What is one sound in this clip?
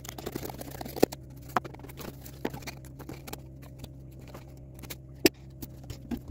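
Sheets of cardboard thump softly as they are set down.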